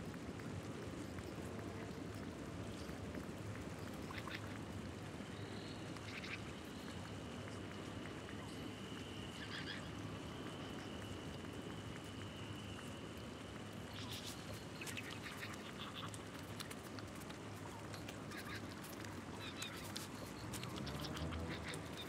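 Soft menu clicks tick as a selection moves.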